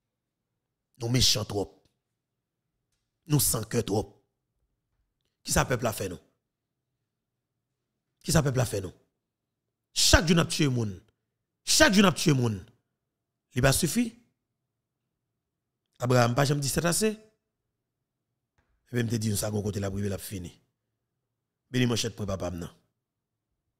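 A man speaks calmly into a close microphone in short phrases.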